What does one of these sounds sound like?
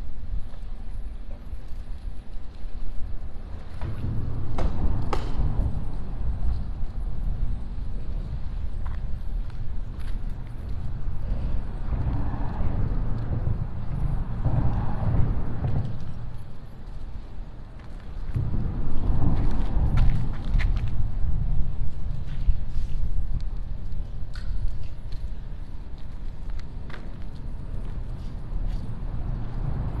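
Wind blows into a microphone outdoors in gusts.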